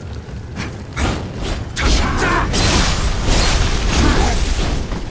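Swords clash and strike with sharp metallic hits.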